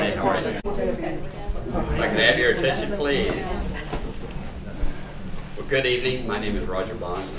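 A middle-aged man speaks to the room with animation.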